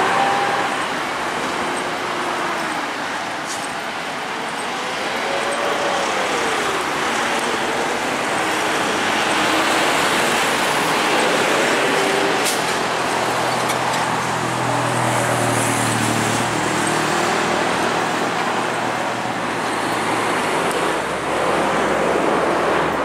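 Traffic rushes steadily along a nearby road.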